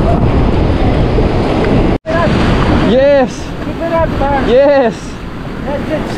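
Waves crash and wash over rocks close by.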